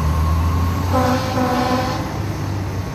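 A fire truck horn blares briefly.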